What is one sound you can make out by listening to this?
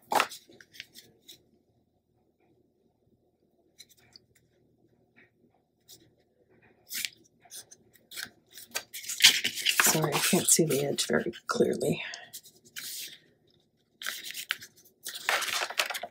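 Hands rub and smooth paper flat with a dry rustle.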